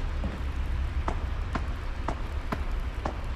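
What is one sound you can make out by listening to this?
Footsteps thud slowly on wooden boards.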